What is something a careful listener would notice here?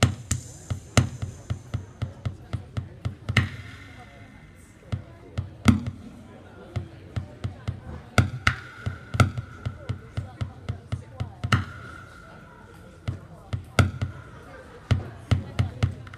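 Electronic drum machine beats pulse in a steady rhythm through loudspeakers outdoors.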